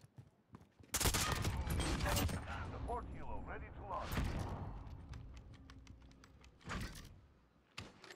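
A rifle fires loud, booming shots that echo.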